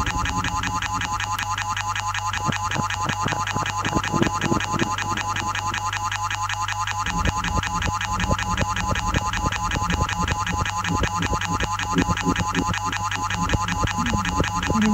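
Electronic music plays loudly with a fast pulsing synth and a thumping beat.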